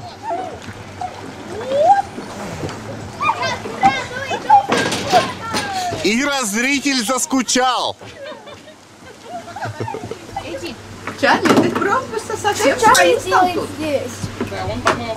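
Young girls chatter and shout excitedly close by.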